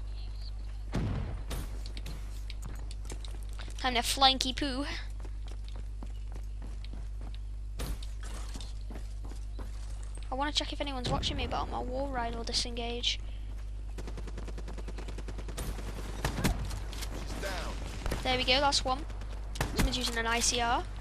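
Gunshots crack from a video game.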